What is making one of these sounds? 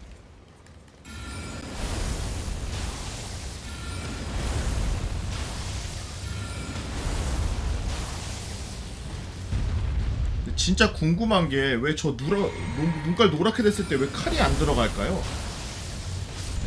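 Magic spells whoosh and burst.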